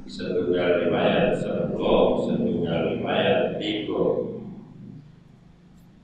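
An elderly man speaks steadily into a close microphone, then falls silent.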